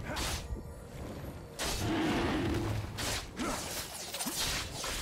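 A large dragon's wings beat heavily with whooshing gusts.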